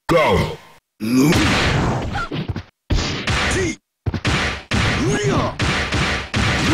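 Heavy blows thud in a fast exchange.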